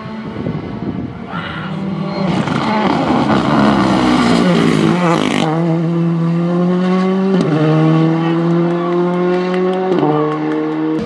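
A second rally car engine roars louder as it approaches and races past.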